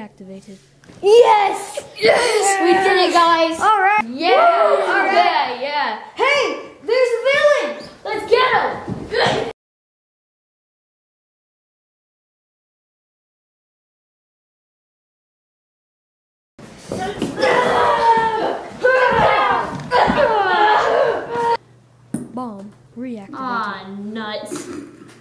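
Young boys talk loudly and excitedly close by.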